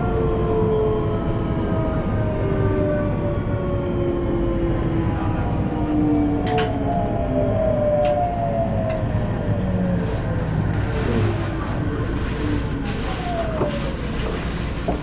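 An electric train's motor whines, falling steadily in pitch as the train slows.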